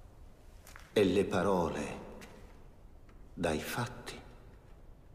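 A man declaims loudly with pauses, his voice echoing in a large hall.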